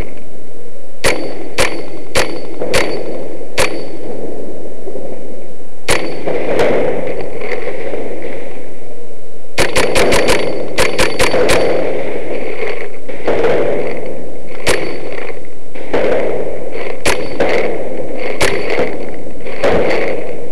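Paintball markers fire sharp popping shots in bursts, echoing in a large hall.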